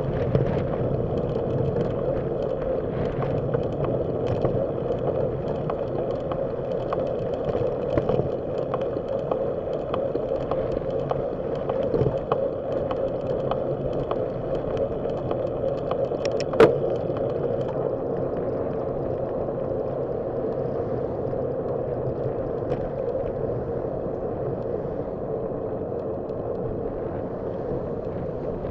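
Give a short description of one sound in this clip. Wind rumbles steadily.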